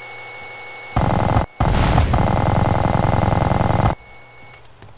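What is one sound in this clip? A heavy machine gun fires in a rapid, roaring burst.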